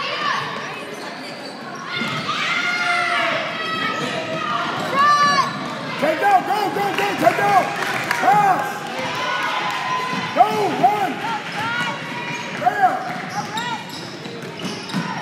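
Voices of a crowd murmur and call out in a large echoing gym.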